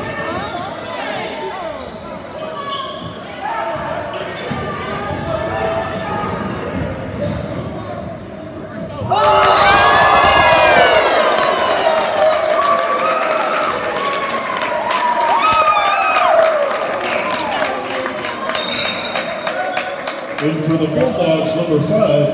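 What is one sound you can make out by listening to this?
A crowd in a large echoing gym chatters and cheers.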